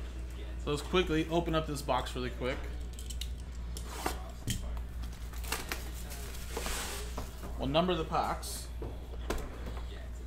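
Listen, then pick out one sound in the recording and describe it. Cardboard and plastic wrapping rustle and crinkle as a box is handled.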